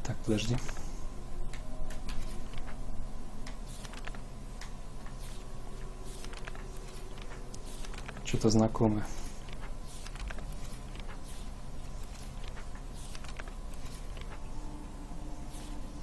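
Paper pages flip over one after another.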